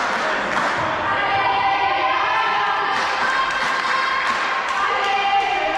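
Young women players shout and call out in a large echoing hall.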